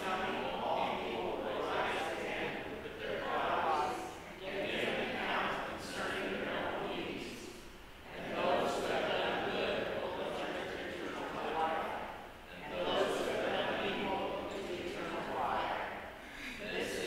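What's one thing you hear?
A man speaks steadily through a microphone, echoing in a large hall.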